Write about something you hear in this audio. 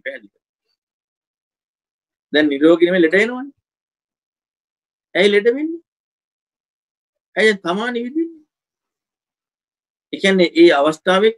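A man speaks calmly in short phrases through an online call, with pauses between them.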